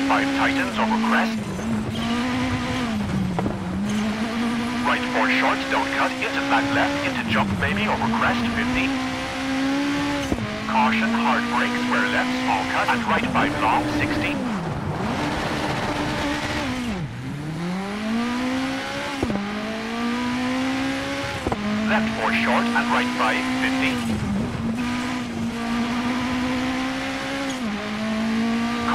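A rally car engine revs hard, rising and falling in pitch as it shifts gears.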